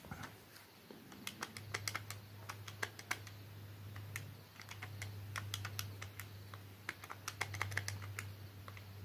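Calculator keys click in quick taps.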